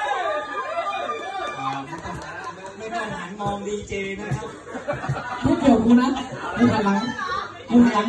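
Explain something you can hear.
A man sings loudly through a microphone over a loudspeaker.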